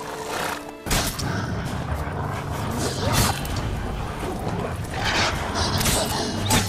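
A sword swishes and strikes repeatedly.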